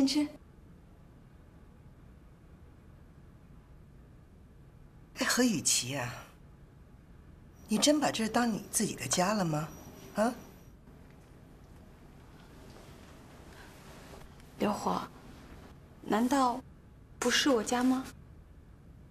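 A middle-aged woman speaks calmly and briefly.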